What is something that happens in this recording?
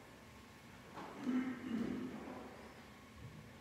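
A man speaks briefly nearby in an echoing hall.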